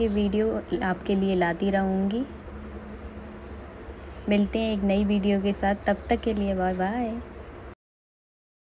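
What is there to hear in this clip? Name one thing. A young woman sings softly close by.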